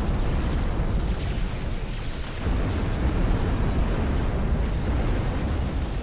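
Explosions boom and rumble in a distant battle.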